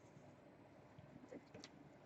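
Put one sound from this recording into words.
A plastic tube knocks lightly as it is handled.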